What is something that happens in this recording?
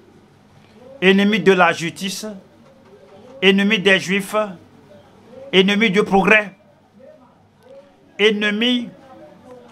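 An elderly man speaks slowly and deliberately into a microphone, in short phrases with pauses.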